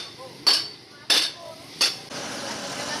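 Hammers strike hot metal with loud ringing clangs.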